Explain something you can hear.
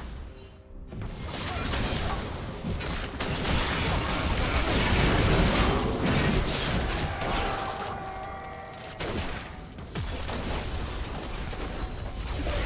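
Magic spells blast, whoosh and crackle in a fast fight.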